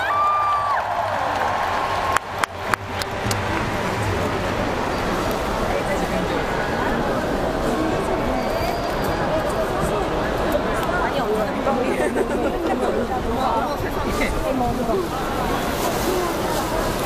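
A large stadium crowd roars and chatters steadily outdoors.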